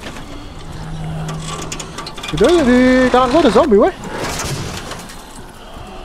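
Metal panel doors creak open.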